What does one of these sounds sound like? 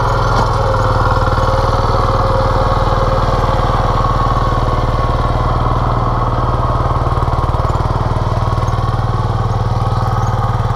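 A walk-behind tiller engine chugs loudly and steadily close by.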